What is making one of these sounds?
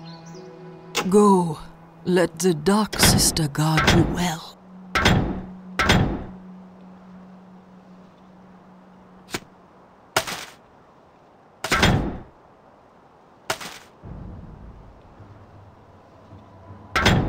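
Sharp game sound effects crackle and burst in short loud blasts.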